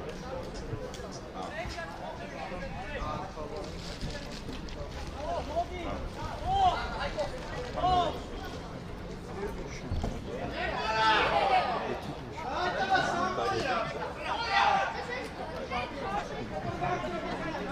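Men shout to each other across an open outdoor pitch.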